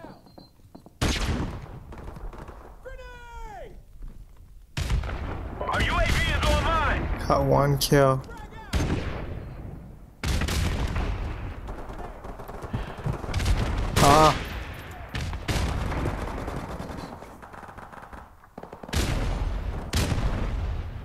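A rifle fires loud, booming shots that echo away.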